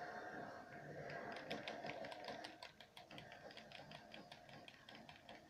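Rapid gunfire from a video game plays through a television speaker.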